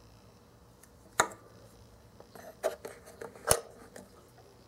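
A small cutlet taps onto a plastic board.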